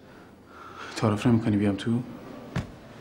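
A woman speaks weakly.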